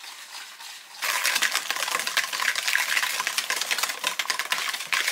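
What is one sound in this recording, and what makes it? A wire whisk beats batter quickly in a plastic bowl.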